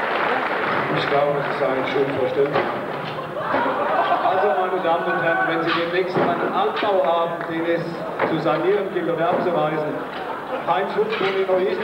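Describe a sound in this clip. Men talk to each other nearby.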